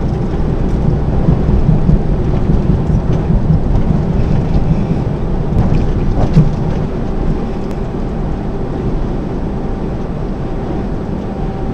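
A heavy diesel truck drones at motorway speed, heard from inside the cab.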